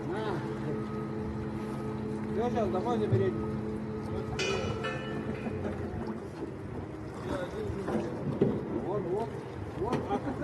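Water splashes as a man wades and thrashes in a lake.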